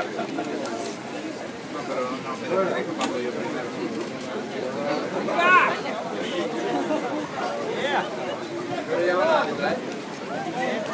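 A crowd of people chatters and talks all around outdoors.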